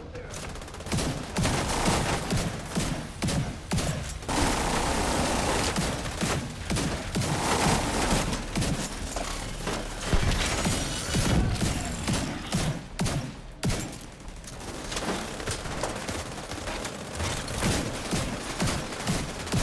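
Rifles fire in rapid bursts, with loud echoing cracks.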